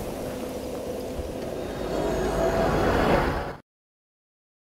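A deep magical whoosh swells and fades.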